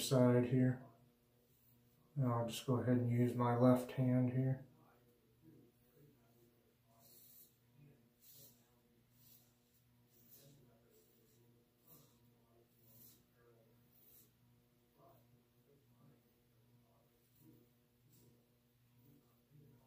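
A razor scrapes softly across stubble.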